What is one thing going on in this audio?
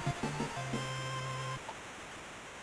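An 8-bit video game plays a short chiptune jingle.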